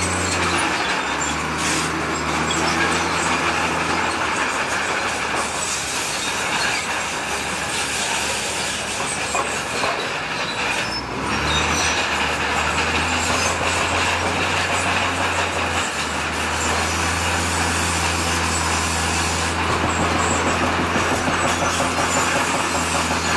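Rocks scrape and grind under a bulldozer blade.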